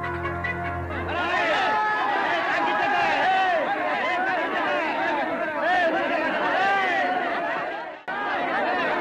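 A crowd of women shouts and clamours loudly.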